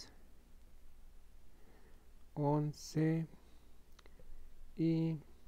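A crochet hook softly pulls yarn through stitches.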